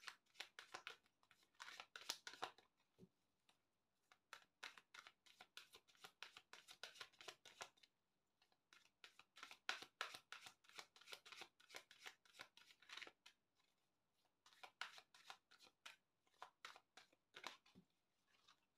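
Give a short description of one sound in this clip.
Playing cards riffle and slap softly as they are shuffled by hand.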